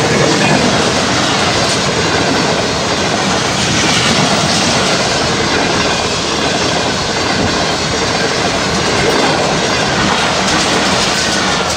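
A train rushes past close by with a loud clattering roar.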